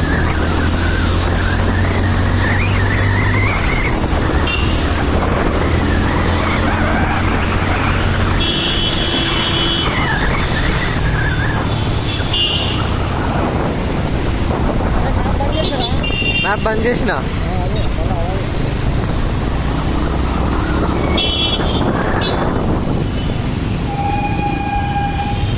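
A motorbike engine hums steadily while riding.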